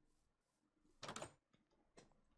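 A wooden door opens with a knock.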